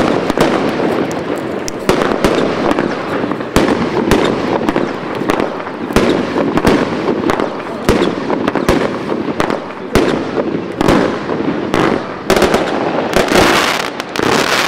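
Fireworks shoot up and burst with sharp bangs.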